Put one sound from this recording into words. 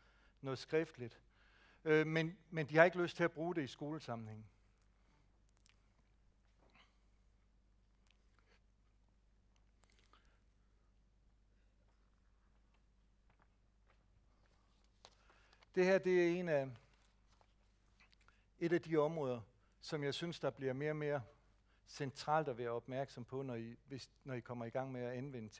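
A man lectures calmly through a microphone, with long pauses.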